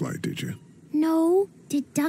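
A young girl answers softly, close by.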